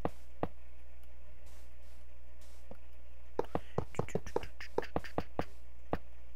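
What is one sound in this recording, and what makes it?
Short wooden and metal clicks sound as rails are placed, in quick bursts.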